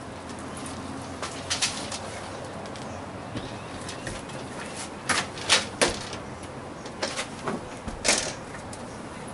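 Metal parts click and knock against a door frame.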